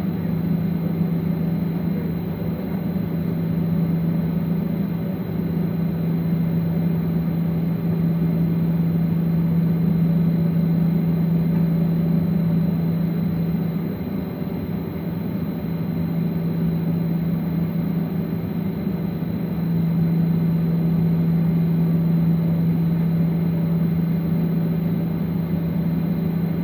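A jet aircraft's engines hum steadily, heard from inside the cabin.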